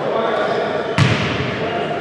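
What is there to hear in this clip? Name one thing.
A basketball thuds on the floor.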